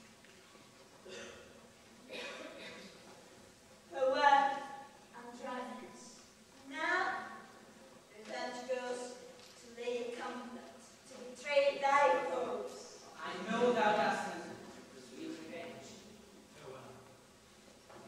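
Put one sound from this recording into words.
A man speaks with strong emotion, heard from a distance in a large hall.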